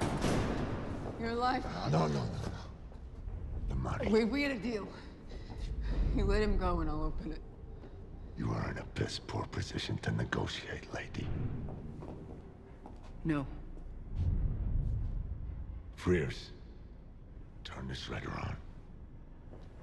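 A man speaks in a low, menacing voice close by.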